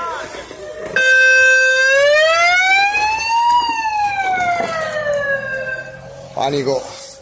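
A vehicle siren wails loudly close by, rising and falling.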